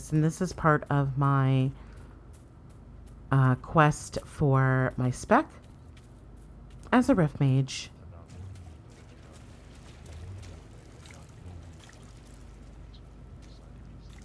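Footsteps pad softly over grass.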